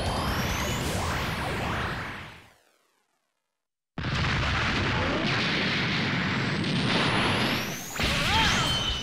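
An energy blast roars and crackles loudly.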